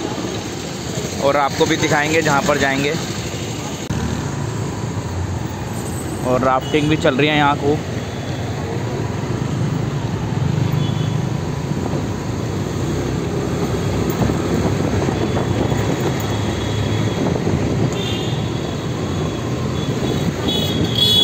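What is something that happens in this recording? Car and scooter engines hum steadily in busy street traffic.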